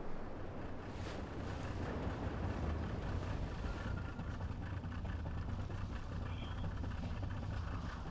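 A boat's engine rumbles low across the water.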